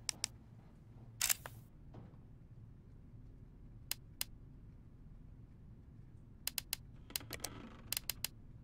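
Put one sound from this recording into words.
Short menu clicks and ticks sound as game menu options change.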